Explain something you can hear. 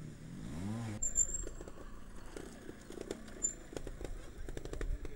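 Tyres crunch and clatter over loose rocks.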